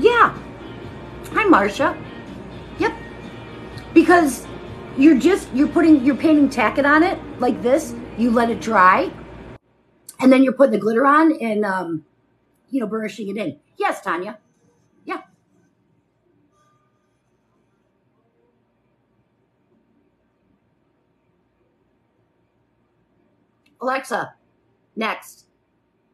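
A middle-aged woman talks with animation close by.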